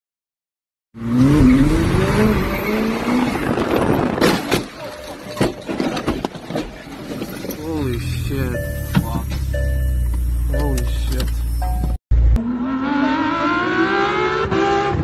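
A sports car engine revs and roars from inside the car.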